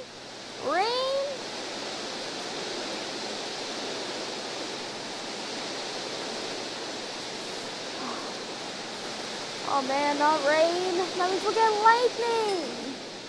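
Rain falls steadily with a soft hiss.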